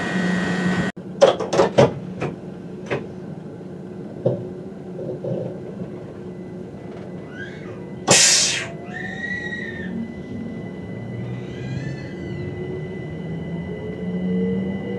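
A train rolls along the tracks, its motor whining upward.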